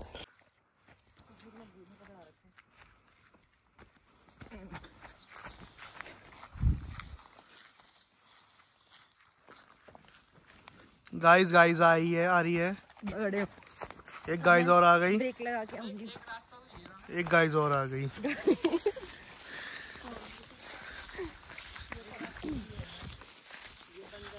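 Footsteps crunch through dry grass and brush.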